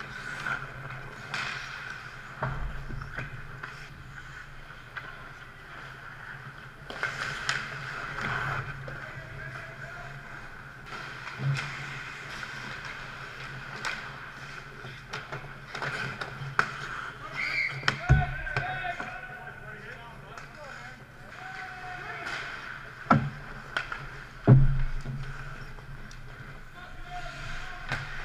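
Ice skates scrape and carve on ice in a large echoing rink.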